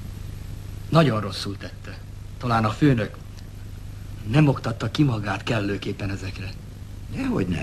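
A middle-aged man talks up close in a low, steady voice.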